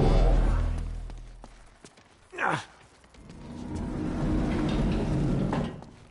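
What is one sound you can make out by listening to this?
Footsteps crunch over loose rubble.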